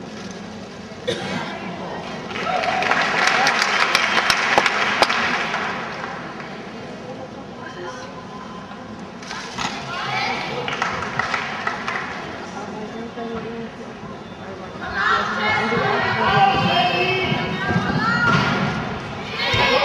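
A large crowd cheers and applauds in an echoing hall.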